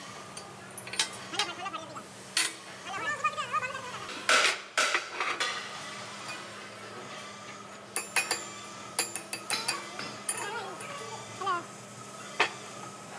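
Steel bars clank and scrape against a metal plate.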